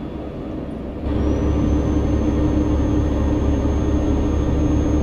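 A diesel truck engine drones while cruising on a highway.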